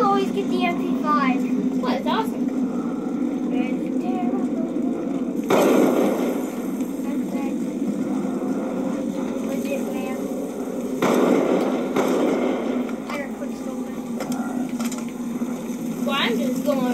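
Gunfire from a video game bursts through a television speaker.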